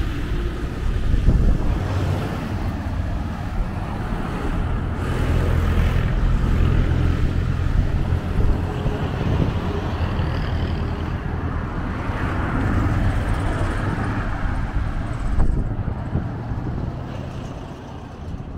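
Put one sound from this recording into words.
Cars and vans drive past close by on a road.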